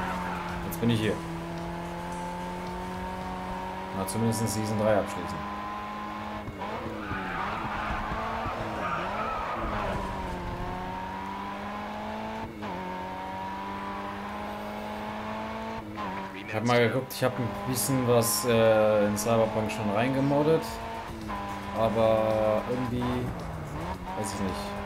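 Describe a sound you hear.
A car engine roars steadily at high revs, shifting gears.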